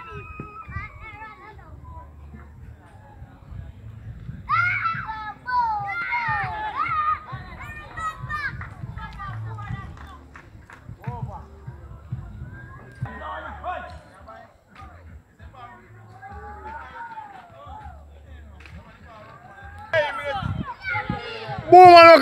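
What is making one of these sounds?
Young men shout and call out outdoors.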